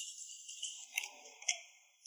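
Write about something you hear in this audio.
A phone rings with a bright electronic tone.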